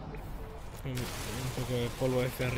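A mining laser buzzes and crackles.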